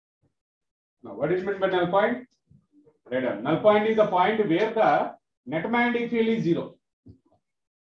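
A man speaks calmly and clearly into a nearby microphone, in short bursts with pauses.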